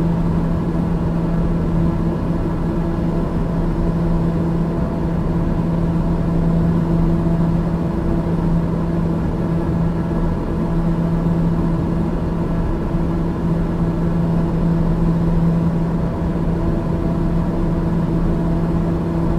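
Aircraft engines drone steadily in flight.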